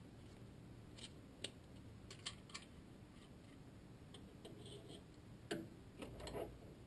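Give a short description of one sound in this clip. Metal parts click and clink as they are handled up close.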